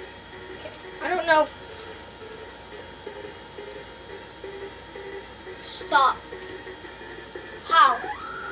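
Game creatures cry out in short electronic squeals from a television.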